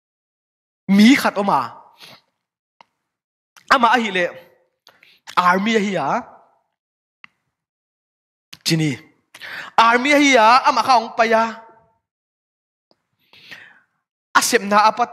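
A young man speaks calmly and earnestly into a microphone, with pauses.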